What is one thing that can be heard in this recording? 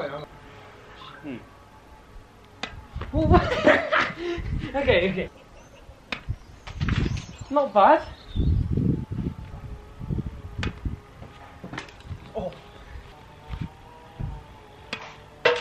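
A tennis racket hits a ball with sharp pops.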